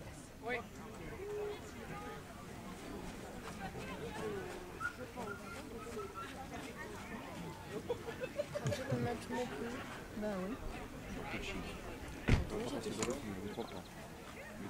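Men and women chat at a distance outdoors.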